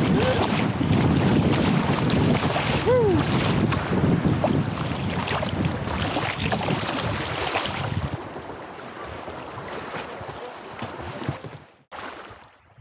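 Rapids rush and splash loudly against a kayak.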